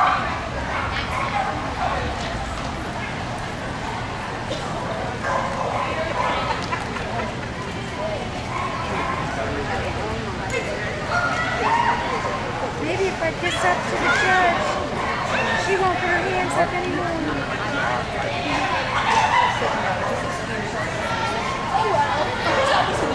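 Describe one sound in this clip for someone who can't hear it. Voices chatter throughout a large echoing indoor hall.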